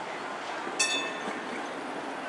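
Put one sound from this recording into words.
A streetcar bell rings once, sharply.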